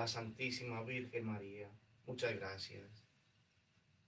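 A man speaks calmly and solemnly nearby.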